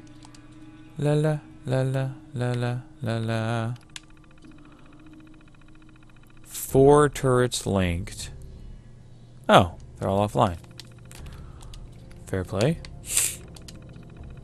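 Computer terminal tones beep and chirp as text prints out.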